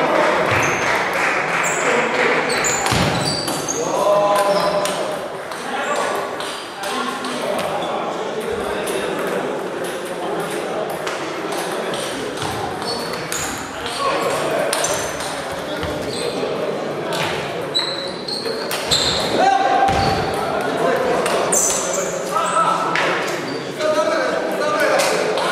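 Table tennis balls click sharply on tables and bats, over and over.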